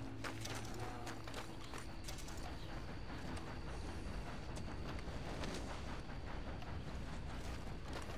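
A horse's hooves thud slowly on soft ground.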